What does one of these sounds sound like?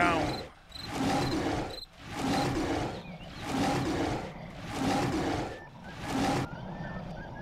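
Wolves snarl and growl in a fight.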